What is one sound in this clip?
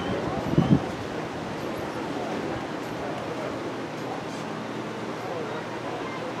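Young women call out to each other in the distance outdoors.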